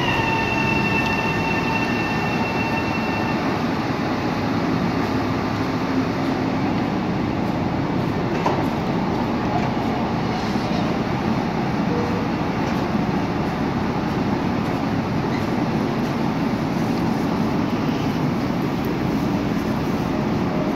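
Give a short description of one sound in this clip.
A train's engine rumbles steadily in an echoing underground station.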